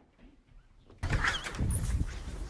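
Footsteps thump quickly down wooden stairs.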